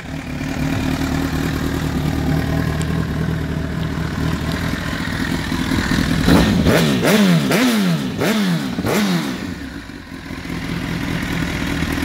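A motorcycle engine idles with a steady rumble.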